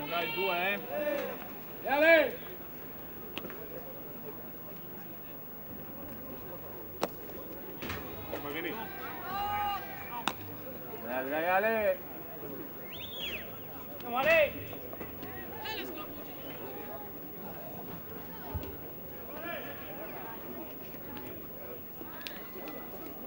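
A crowd murmurs softly in the stands outdoors.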